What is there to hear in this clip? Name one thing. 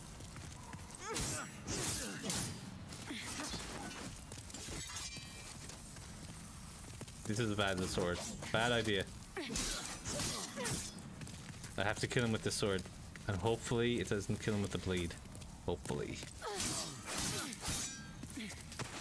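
Swords swish and clash in quick blows.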